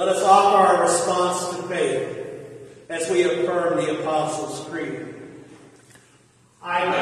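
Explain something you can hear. An elderly man speaks calmly in an echoing room.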